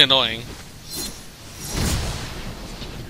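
A blade slashes through the air with a sharp whoosh.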